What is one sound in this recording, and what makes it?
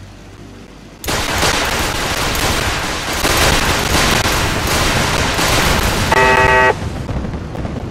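A laser gun fires in a rapid burst.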